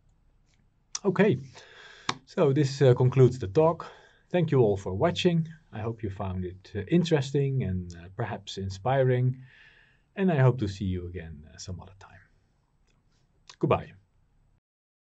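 A man talks calmly and clearly into a close microphone.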